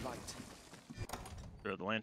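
A magical item shimmers with a bright chiming sparkle.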